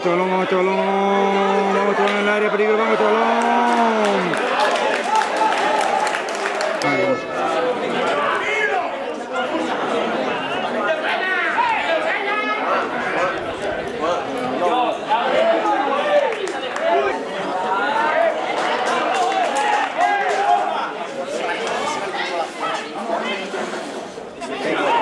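A crowd of spectators shouts and chatters outdoors.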